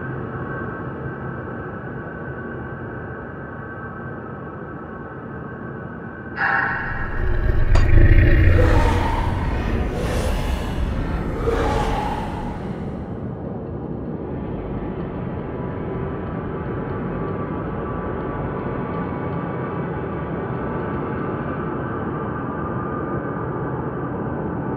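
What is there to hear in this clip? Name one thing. Dark, droning game music plays steadily.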